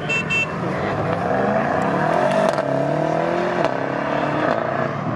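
Another car engine roars and rises in pitch as it speeds away.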